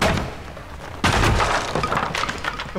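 Wooden boards crack and splinter loudly.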